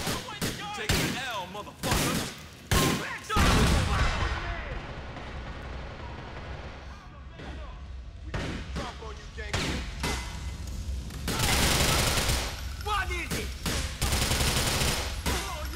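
Gunshots ring out in sharp bursts.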